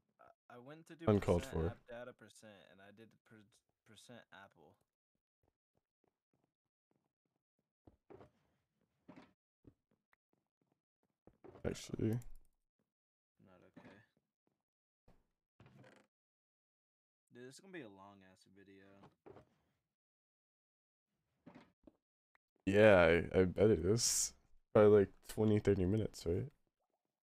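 A young man talks casually into a close microphone, at times with animation.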